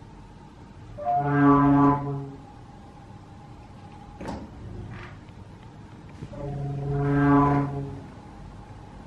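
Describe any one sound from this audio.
A small machine gives out a loud buzzing drone that swells and stops, twice.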